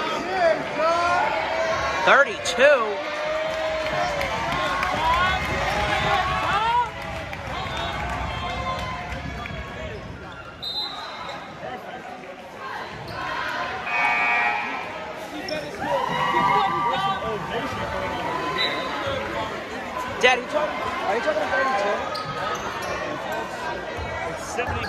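A crowd of spectators chatters and cheers loudly in a large echoing gym.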